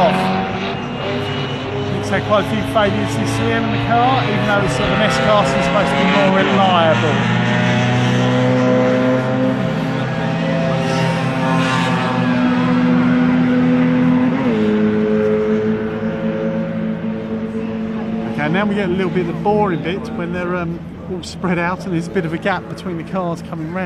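Racing car engines roar and change pitch as cars speed past on a track.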